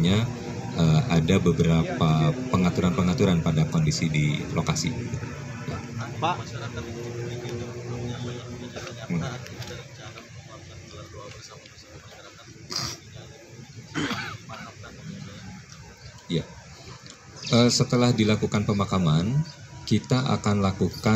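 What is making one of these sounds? A man speaks calmly into a microphone outdoors.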